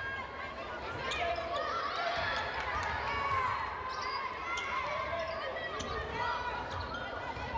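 A basketball bounces with hollow thumps.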